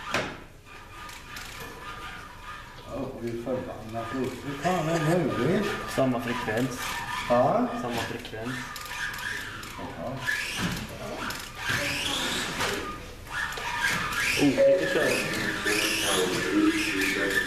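Small electric motors of toy race cars whine, rising and falling in pitch.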